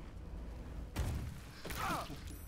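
A sharp magical burst sounds with a low boom.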